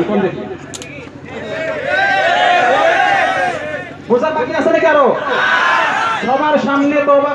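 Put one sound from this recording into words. A man preaches loudly and with fervour through a loudspeaker outdoors, his voice echoing.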